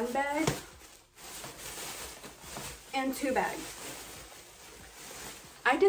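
Plastic bags rustle and crinkle.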